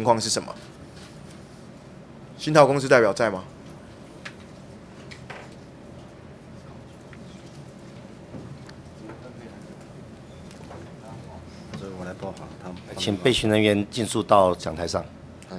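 A man speaks into a microphone in short bursts, with pauses, in a room with some echo.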